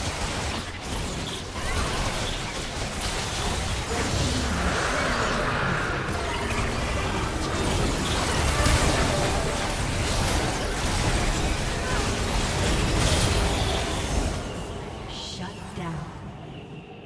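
Magical blasts and crackling spell effects clash in a fierce battle.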